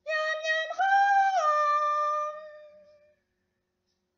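A young woman sings a few sustained notes close by.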